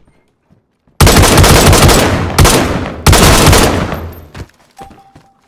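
A rifle fires loud rapid shots in a small echoing room.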